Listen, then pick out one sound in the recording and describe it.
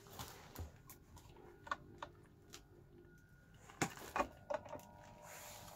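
A plastic pump clicks and knocks against a plastic jug.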